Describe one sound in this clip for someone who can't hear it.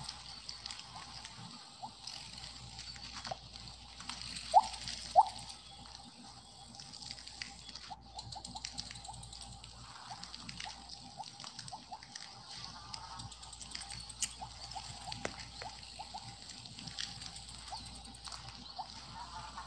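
Short electronic blips pop again and again as a game snake eats.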